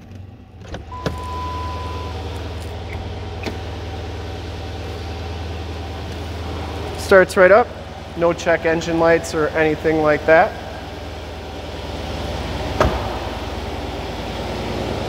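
A car engine starts and idles with a low, steady rumble.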